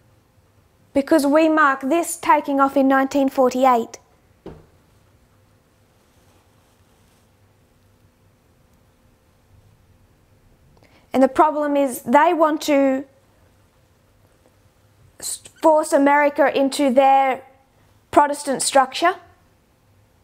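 A young woman speaks calmly into a close microphone, in short bursts with pauses.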